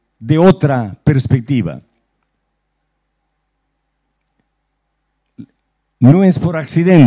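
An elderly man reads aloud into a microphone, pausing between phrases.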